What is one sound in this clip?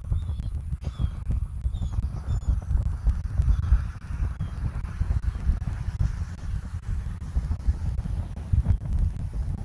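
Wind blows in gusts outdoors, rumbling low against the microphone.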